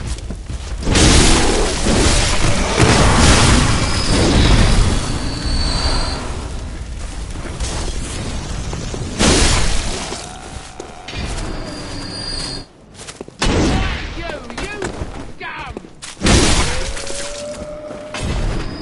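Loud explosions boom and roar.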